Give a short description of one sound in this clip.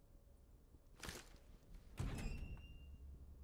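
A heavy metal door is pushed open with a loud clunk.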